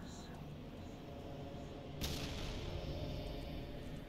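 A magical burst erupts with a loud whoosh.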